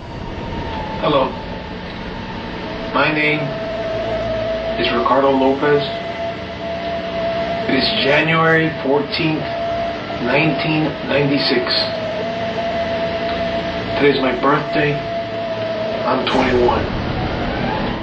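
A young man speaks close by in bursts, with pauses between phrases.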